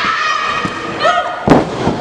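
A wrestler slams onto the ring mat with a heavy thud.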